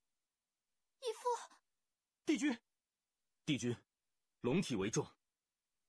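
Young men speak in short, dramatic lines, heard close and clear.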